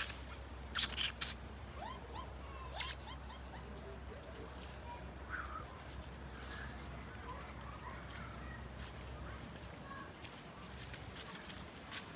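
Paws patter and rustle through dry fallen leaves.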